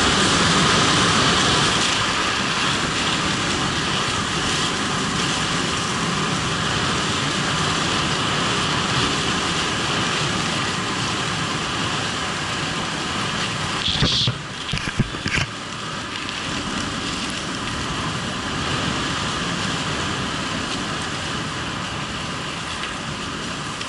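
Wind rushes loudly past close by, outdoors.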